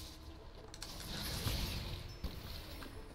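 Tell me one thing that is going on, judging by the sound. A magical energy blast crackles and fizzes.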